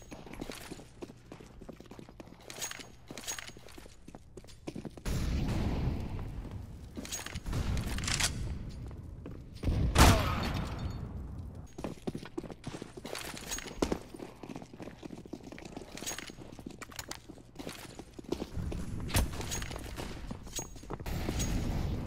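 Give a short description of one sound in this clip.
Footsteps patter quickly on hard stone floors.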